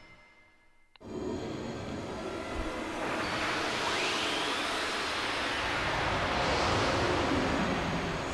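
Magical chimes shimmer and sparkle.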